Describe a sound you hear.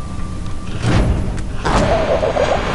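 A laser gun fires with a sharp zap.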